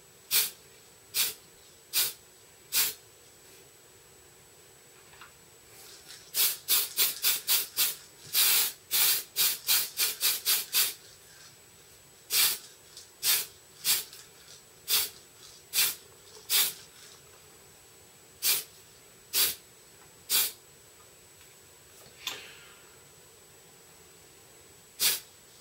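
A spray can hisses in short, sharp bursts.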